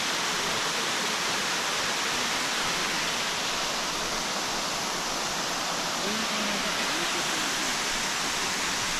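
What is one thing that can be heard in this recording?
A small waterfall splashes and rushes steadily nearby.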